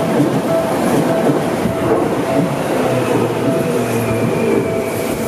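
A train rumbles past close by, its wheels clattering on the rails.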